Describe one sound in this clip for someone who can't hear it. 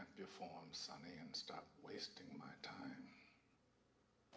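An elderly man speaks slowly and calmly in a deep voice.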